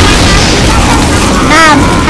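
A flamethrower roars in a burst of fire.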